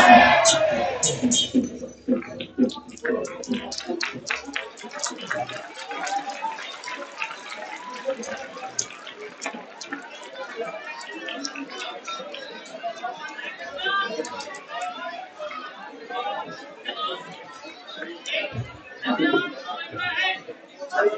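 A large crowd of men and women talk and call out together in a big echoing hall.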